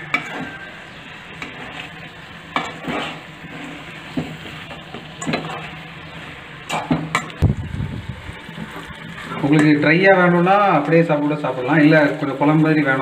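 A metal spoon scrapes and clatters against a pan while stirring food.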